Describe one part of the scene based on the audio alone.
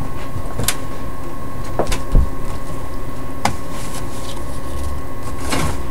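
Playing cards tap and slide against each other.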